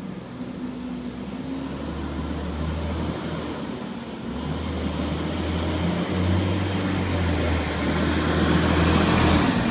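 A large truck's engine rumbles, growing louder as it approaches.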